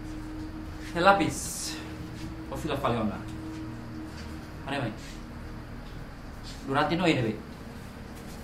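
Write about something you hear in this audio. A young man questions another man in a firm, low voice.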